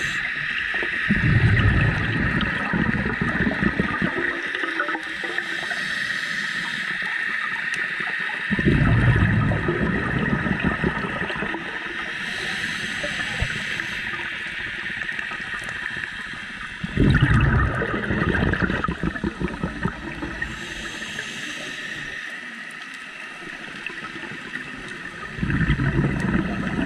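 Scuba breathing bubbles gurgle and rumble in loud bursts underwater.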